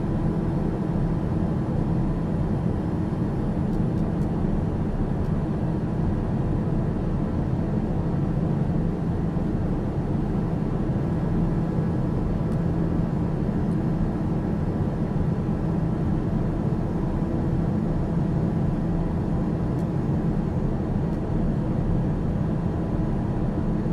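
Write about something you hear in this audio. A light aircraft's engine drones steadily inside the cockpit in cruise flight.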